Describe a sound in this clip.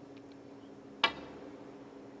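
A cue tip sharply strikes a snooker ball.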